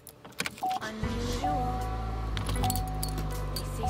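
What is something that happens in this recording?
A car engine starts up.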